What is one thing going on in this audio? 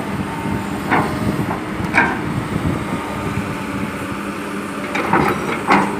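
Dirt and rocks pour into a metal truck bed with a rumbling thud.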